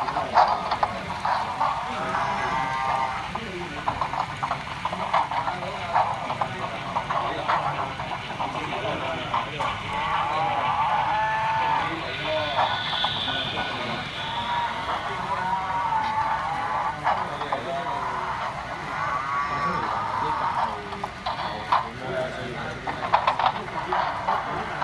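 A model train rumbles and clicks along its track.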